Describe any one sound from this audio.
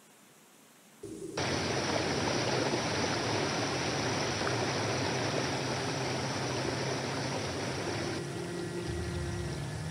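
A waterfall rushes and splashes loudly.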